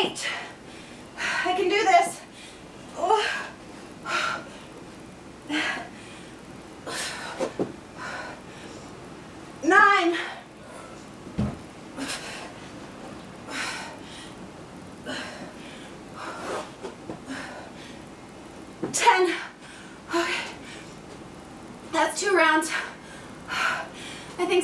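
Sneakers thump and shuffle on a carpeted floor.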